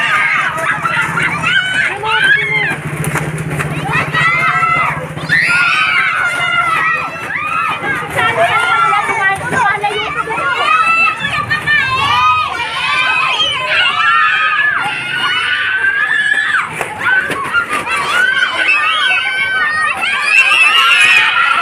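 A crowd of children shout and cheer excitedly close by.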